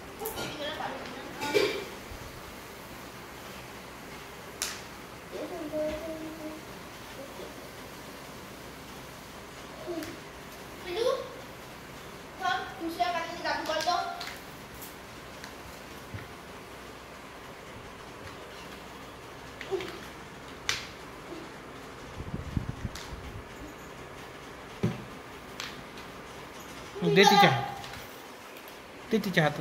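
A toddler babbles and squeals close by.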